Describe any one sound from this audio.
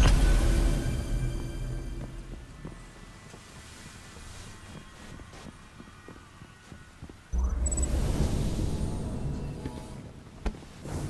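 A deep booming game effect swells up and slowly fades.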